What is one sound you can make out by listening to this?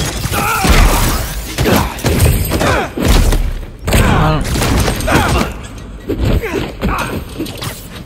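Heavy punches and kicks thud in a fight.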